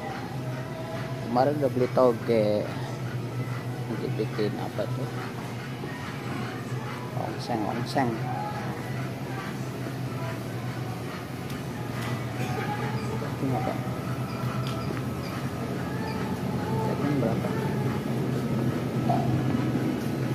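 A young man talks casually and close up.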